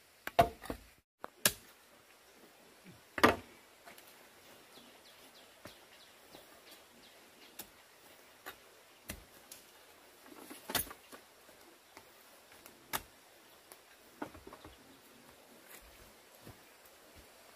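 Bamboo poles knock and clatter against each other.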